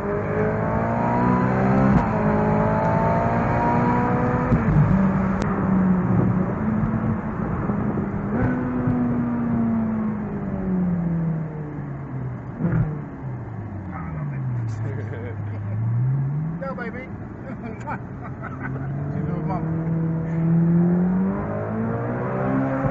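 Wind rushes past an open-top car.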